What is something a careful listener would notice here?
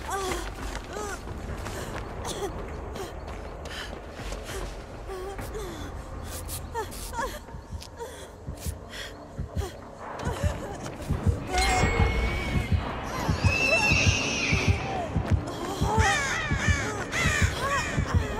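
Footsteps rustle quickly through grass and undergrowth.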